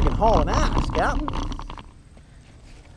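A scooter rattles and rumbles close by as it rolls over pavement.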